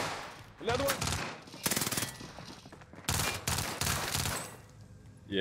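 A submachine gun fires bursts of rapid shots.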